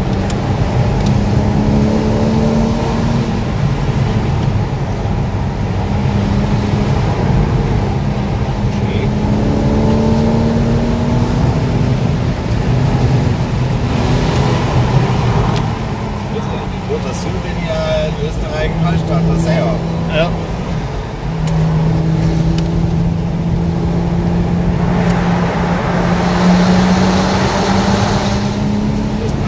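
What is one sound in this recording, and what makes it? A car engine hums steadily from inside the car, rising and falling in pitch.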